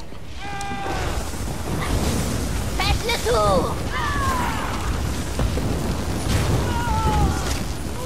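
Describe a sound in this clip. Electric bolts crackle and snap in a fight.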